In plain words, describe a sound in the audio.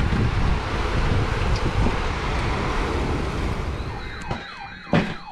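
Floodwater rushes and gurgles outdoors.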